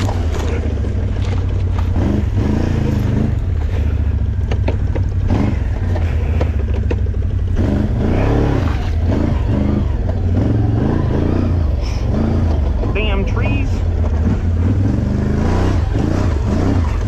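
An off-road quad engine roars and revs up and down.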